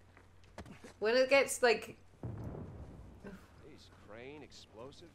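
A young woman talks casually into a headset microphone.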